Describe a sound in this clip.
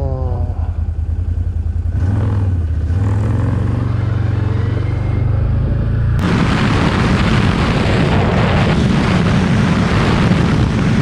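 A motorcycle engine hums and revs as the bike rides along a road.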